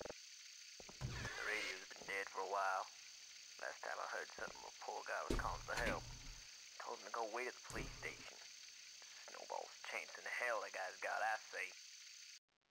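A voice plays back from a reel-to-reel tape recorder.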